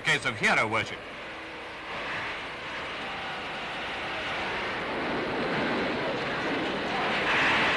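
A crowd chatters and murmurs in the background.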